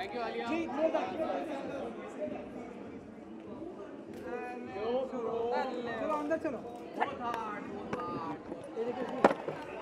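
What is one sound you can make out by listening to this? A crowd of men and women talk and call out over each other close by.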